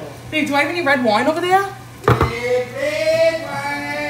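A can is set down on a wooden counter with a knock.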